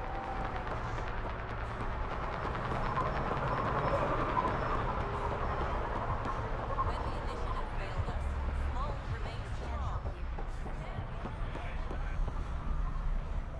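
Footsteps run quickly on a hard metal floor.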